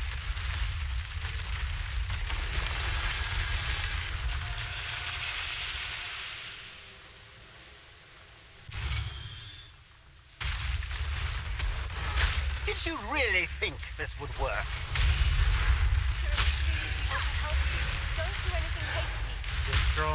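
Swirling blade attacks whoosh and clash.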